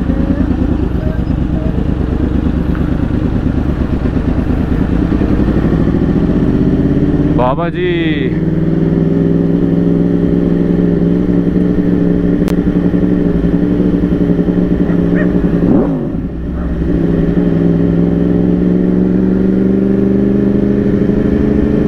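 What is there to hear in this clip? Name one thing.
A motorcycle engine hums steadily and revs up as the rider accelerates.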